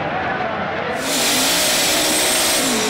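Tyres screech loudly in a burnout.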